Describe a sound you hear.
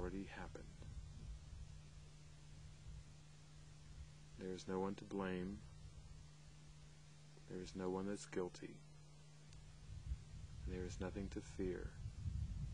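A middle-aged man speaks calmly and close by, in short phrases with pauses.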